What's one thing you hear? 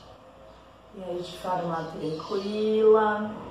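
A woman chants a long, steady tone.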